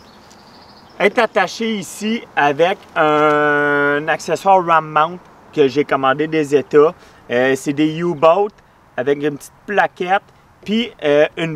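A man talks animatedly, close up.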